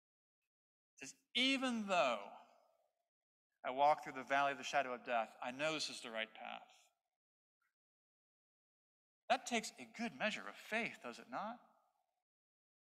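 A man speaks calmly into a microphone, with a slight echo in a large room.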